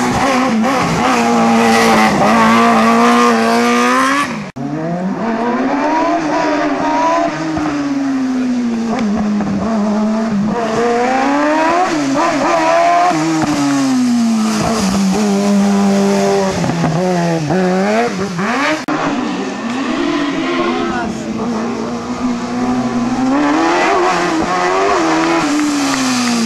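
A race car engine roars and revs hard, rising and falling in pitch as it speeds past.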